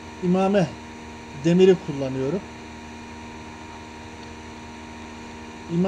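A small electric motor hums steadily.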